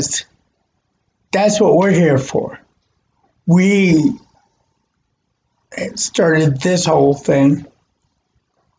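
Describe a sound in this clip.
A man speaks calmly, close to the microphone, heard through an online call.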